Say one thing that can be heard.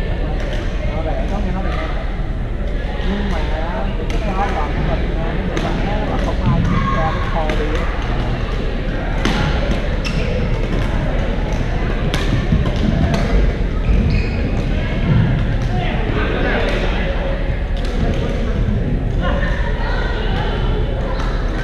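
Shuttlecocks are struck with rackets, with sharp pops across a large echoing hall.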